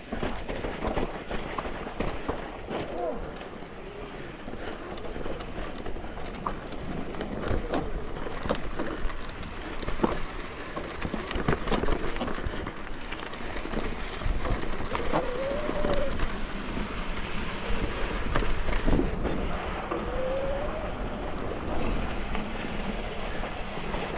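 A bicycle's chain and frame rattle and clank over bumps.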